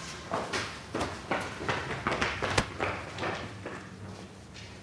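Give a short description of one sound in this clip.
Footsteps thud quickly across a floor indoors.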